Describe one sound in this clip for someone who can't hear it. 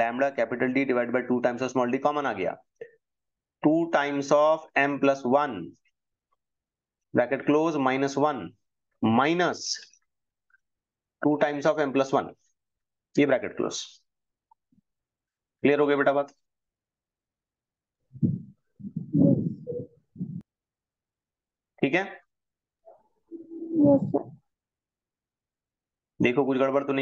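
A man explains calmly through a microphone, in short bursts with pauses.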